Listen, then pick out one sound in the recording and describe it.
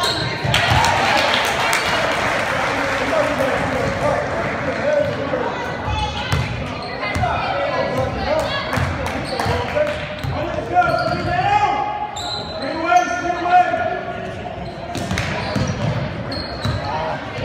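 A crowd of spectators cheers and calls out in a large echoing gym.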